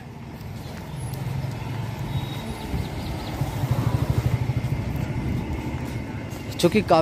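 A motorbike engine hums as the motorbike rides past.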